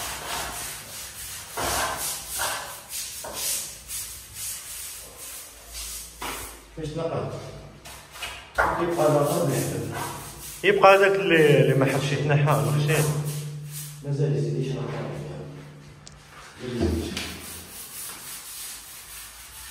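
A stiff broom scrubs back and forth against a wall.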